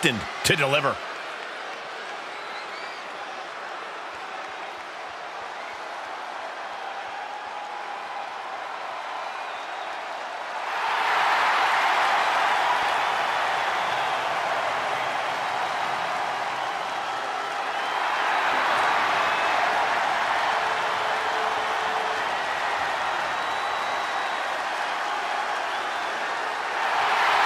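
A large crowd cheers and roars in a big arena, swelling louder partway through.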